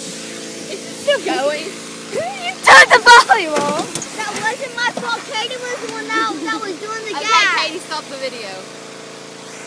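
Young girls talk and laugh excitedly close by.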